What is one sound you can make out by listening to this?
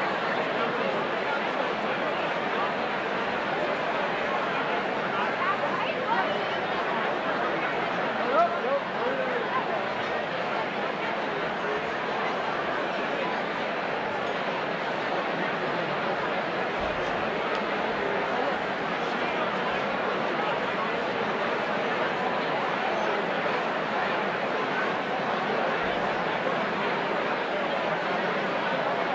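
A large crowd of men and women chatters loudly in a big echoing hall.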